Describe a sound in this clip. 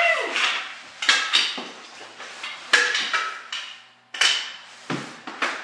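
A hockey stick clacks sharply against a ball on a hard floor, again and again.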